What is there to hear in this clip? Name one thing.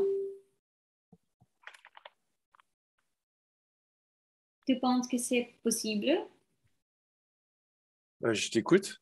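A young woman speaks calmly, heard through an online call.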